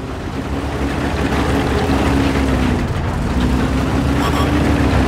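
A heavy tank engine rumbles steadily and drones.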